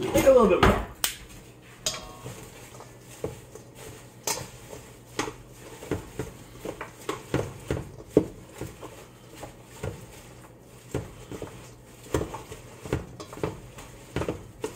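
Metal tongs clink and scrape against a metal bowl.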